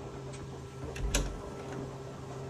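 A door clicks open.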